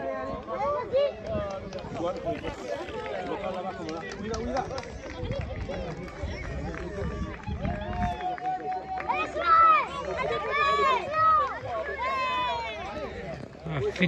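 A crowd of men, women and children talk and call out nearby outdoors.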